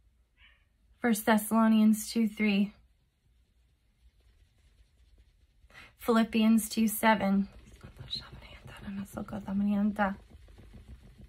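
A woman speaks slowly and earnestly, close to a microphone, with long pauses.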